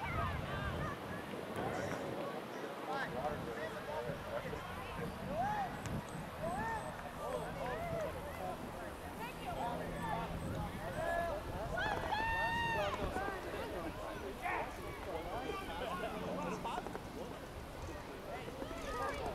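Many voices of players and spectators shout and call out across an open field.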